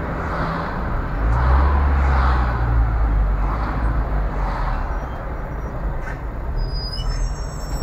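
A truck engine rumbles close alongside.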